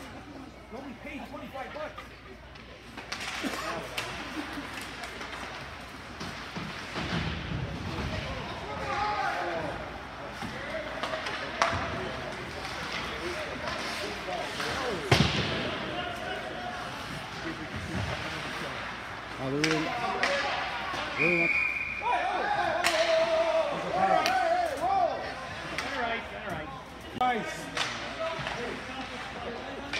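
Spectators chatter in a large echoing rink.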